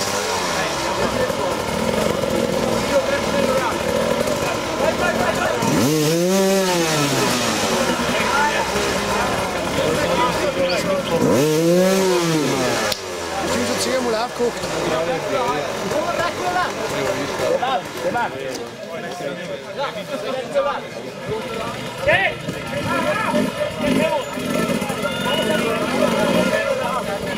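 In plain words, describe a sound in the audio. A large crowd outdoors shouts and cheers with excitement.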